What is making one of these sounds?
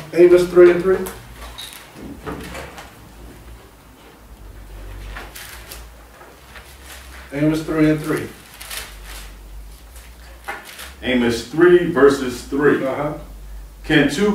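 A man speaks calmly close to a microphone, in short bursts with pauses.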